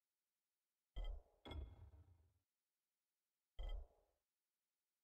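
Short soft interface clicks sound a few times.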